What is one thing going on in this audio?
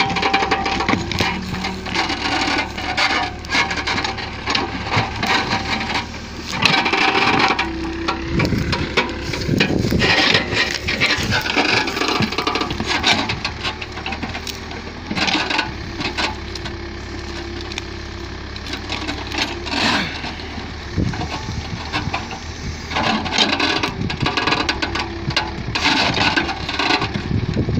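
An excavator bucket scrapes and digs through soil and roots.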